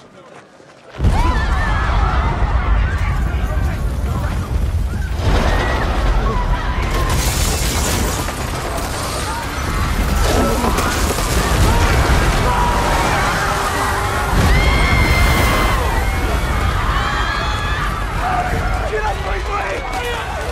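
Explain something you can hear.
A crowd screams and shouts in panic.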